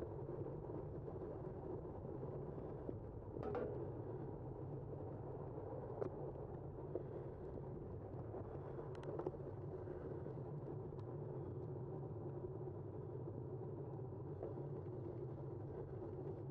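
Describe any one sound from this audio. Bicycle tyres hum steadily along a smooth paved path.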